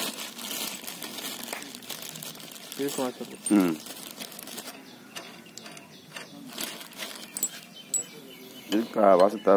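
A metal frame clinks and rattles as hands adjust it.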